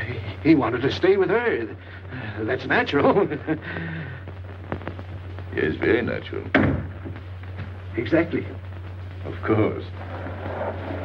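A man speaks in short, tense bursts.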